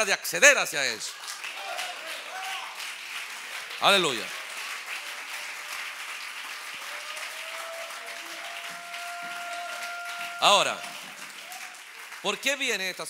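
A crowd claps their hands.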